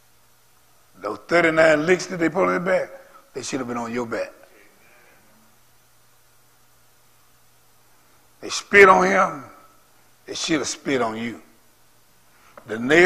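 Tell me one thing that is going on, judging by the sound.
A man preaches through a microphone in a large room, speaking with feeling and pausing between phrases.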